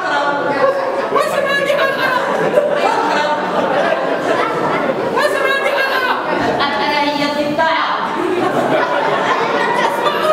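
A violin plays a wavering melody through a loudspeaker in an echoing hall.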